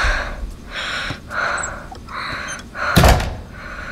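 A door thuds shut.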